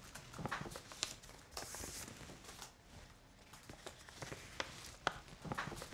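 Paper rustles as an envelope is handled.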